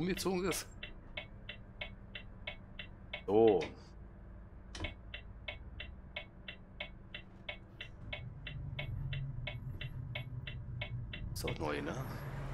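A truck's turn signal ticks at a steady, quick pace.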